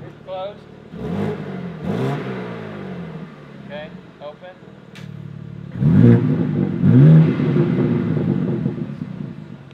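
A car engine revs sharply several times, its exhaust roaring.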